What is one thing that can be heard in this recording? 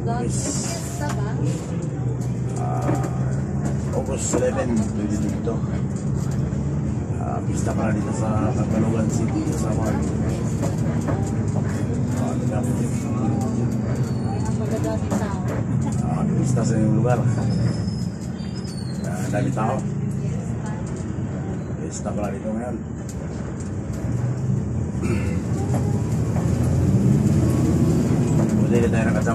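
A bus engine hums steadily from inside the cabin.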